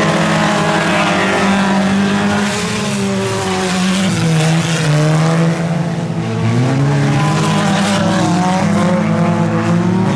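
Several car engines roar and rev loudly as cars race on dirt.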